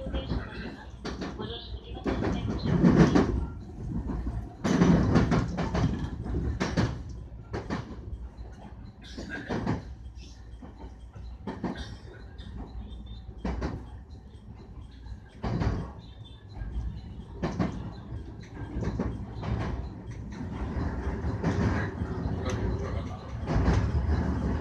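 A train rumbles along the tracks, wheels clacking over rail joints.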